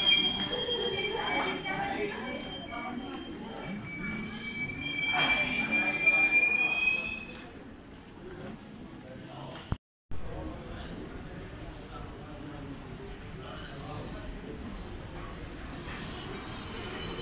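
Train wheels rumble and clack along the rails.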